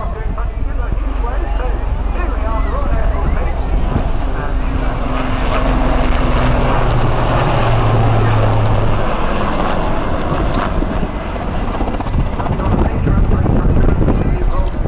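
A helicopter's rotor thumps and drones overhead, growing louder as it passes.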